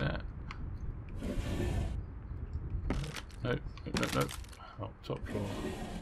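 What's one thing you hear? A wooden drawer slides open and shut.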